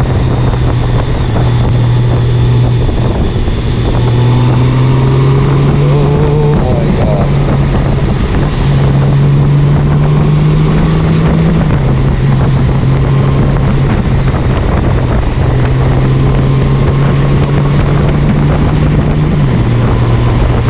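Wind rushes past a motorcycle rider.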